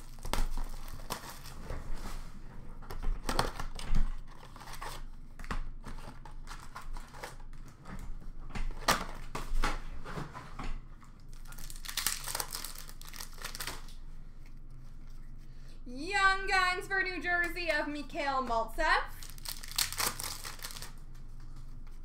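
Plastic wrappers crinkle and rustle as hands handle card packs.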